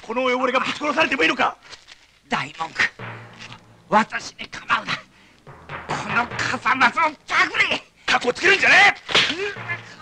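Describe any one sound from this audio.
An elderly man speaks tensely, close by.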